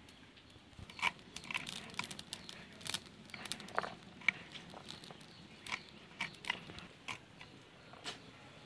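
A blade slices through crisp vegetables with quick, light clicks.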